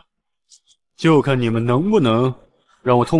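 A second man speaks in a low, gruff, mocking voice, close by.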